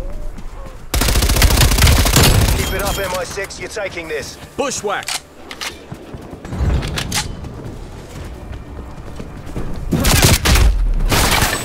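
Rifle shots crack sharply, one after another.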